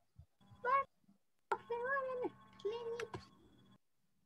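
A child speaks briefly through an online call.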